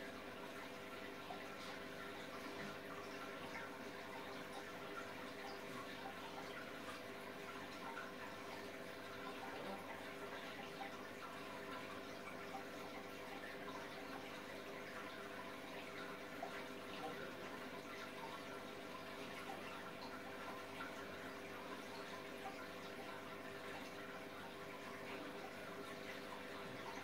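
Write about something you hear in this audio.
Water trickles and bubbles gently.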